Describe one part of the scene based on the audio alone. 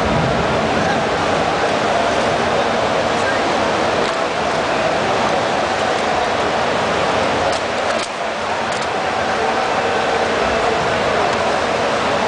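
Loud music booms through speakers in a large echoing hall.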